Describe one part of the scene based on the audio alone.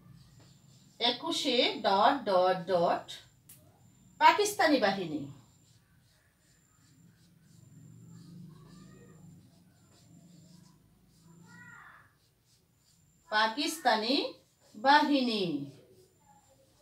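A woman speaks clearly and slowly, close by, as if teaching.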